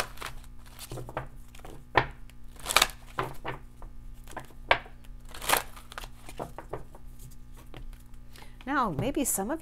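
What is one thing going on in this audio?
Cards riffle and slap as they are shuffled.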